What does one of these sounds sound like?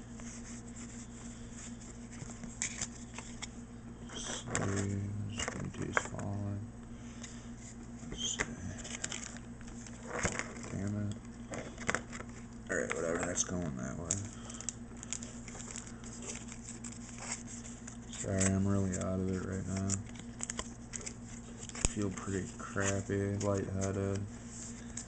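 Stiff playing cards slide and flick against each other close by.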